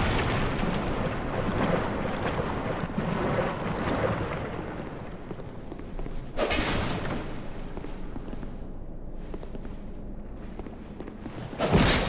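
Armour clanks with heavy footsteps on stone.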